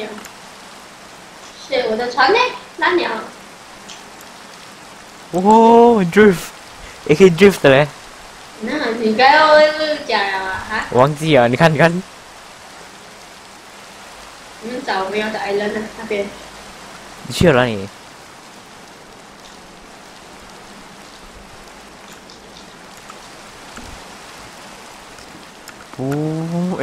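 Rain patters steadily on water.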